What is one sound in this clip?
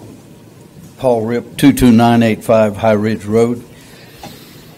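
An elderly man speaks into a microphone over a loudspeaker in an echoing hall.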